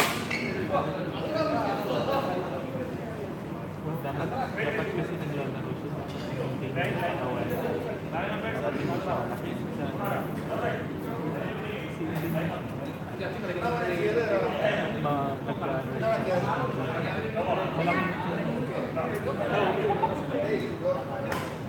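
Shuttlecocks are struck by rackets with sharp pops.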